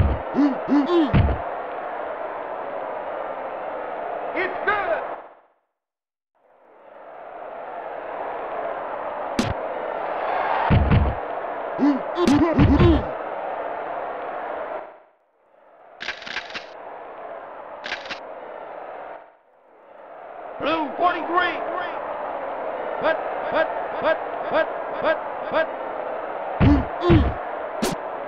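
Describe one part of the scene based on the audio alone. A crowd roars steadily through tinny game sound.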